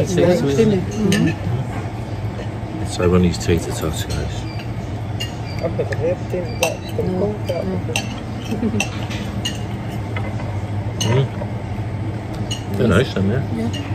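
Cutlery clinks on a plate.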